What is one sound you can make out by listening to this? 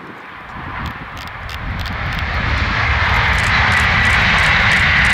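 A high-speed train rushes past in the distance, its roar growing louder.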